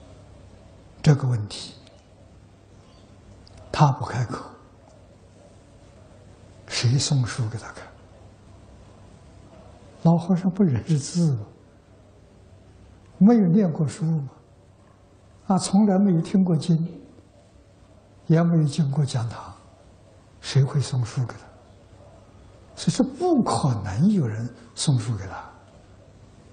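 An elderly man speaks calmly through a clip-on microphone, in short phrases with pauses between them.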